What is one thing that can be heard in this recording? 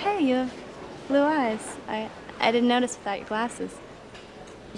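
A young woman speaks softly and warmly up close.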